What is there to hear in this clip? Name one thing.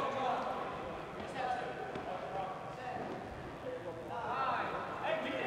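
Balls bounce on a hard floor.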